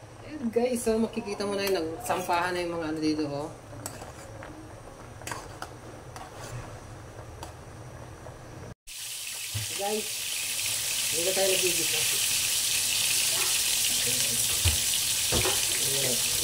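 Water boils hard in a pot, bubbling and hissing steadily.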